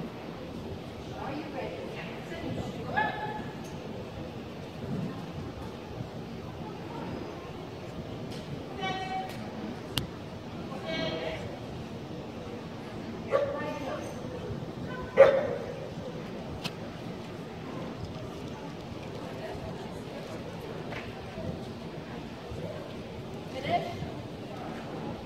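A woman calls out commands to a dog in a large echoing hall.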